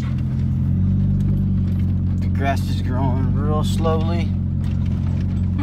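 A vehicle engine hums steadily from inside a cab.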